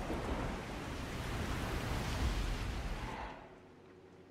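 Rain pours down heavily.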